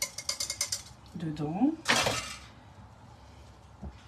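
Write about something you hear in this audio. Metal clinks against a metal bowl.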